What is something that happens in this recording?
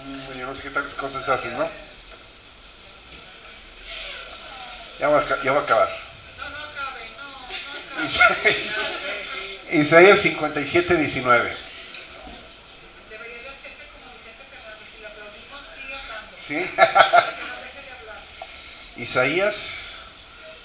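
A middle-aged man speaks with animation into a microphone, heard through loudspeakers.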